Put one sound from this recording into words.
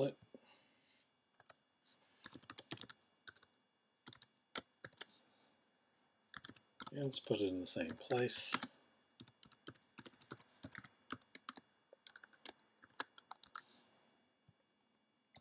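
Keys on a computer keyboard click as someone types.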